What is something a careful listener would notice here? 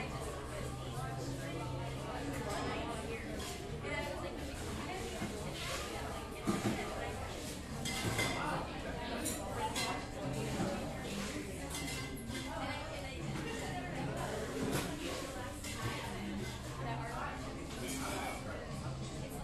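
Several people chatter indistinctly in a busy room.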